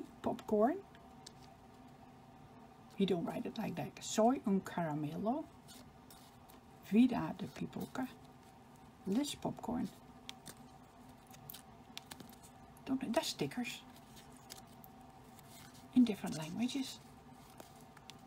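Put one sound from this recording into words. Small cardboard cards rustle softly as hands shuffle them.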